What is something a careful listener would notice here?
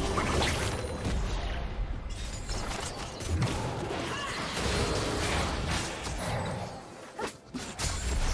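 Magic spell effects whoosh and crackle in a fast-paced battle.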